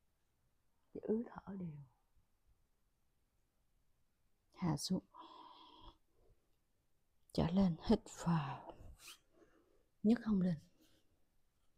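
A young woman speaks calmly and close by, in short phrases with pauses.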